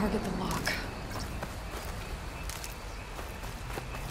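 Footsteps run softly over grass and leaves.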